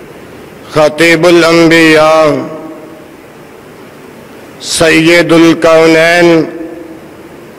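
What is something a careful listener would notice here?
A man speaks loudly and forcefully into a microphone, heard through a loudspeaker, in two short bursts.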